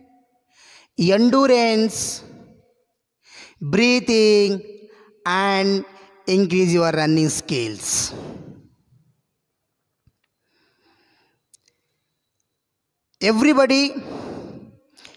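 A young man speaks with animation close to a headset microphone.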